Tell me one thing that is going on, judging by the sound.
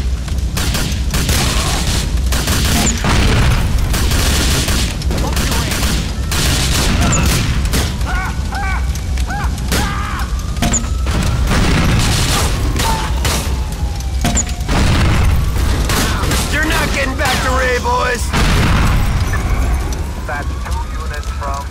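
Gunshots crack rapidly and repeatedly.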